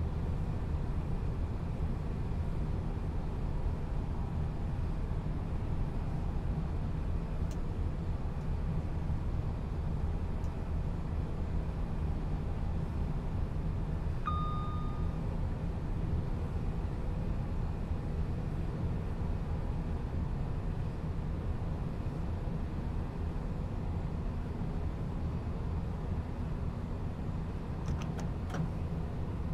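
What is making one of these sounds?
A train rumbles steadily along the rails from inside the driver's cab.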